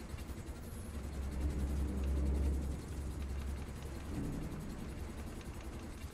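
A deep electrical hum drones steadily, swelling for a moment and then easing off.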